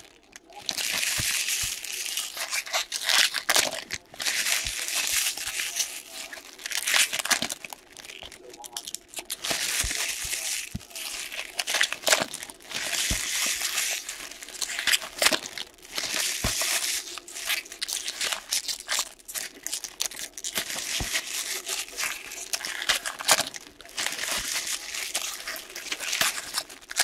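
Hands crinkle and tear open foil trading card packs.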